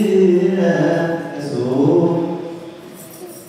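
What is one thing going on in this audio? A group of men sing together.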